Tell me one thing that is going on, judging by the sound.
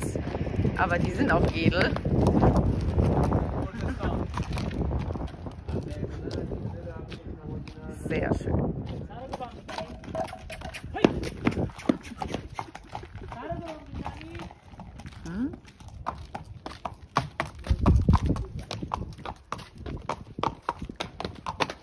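Horse hooves clop on dirt as a horse walks.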